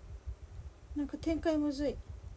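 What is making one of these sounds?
A young woman speaks briefly up close.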